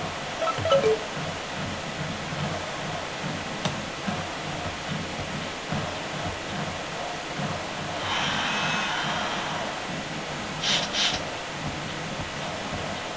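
A stadium crowd roars steadily, swelling loudly for a moment.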